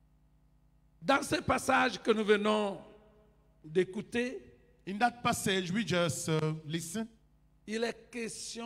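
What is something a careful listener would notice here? An elderly man speaks with animation into a microphone over a loudspeaker system.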